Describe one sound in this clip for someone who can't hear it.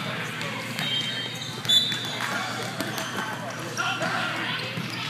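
Shoes squeak on a hard gym floor.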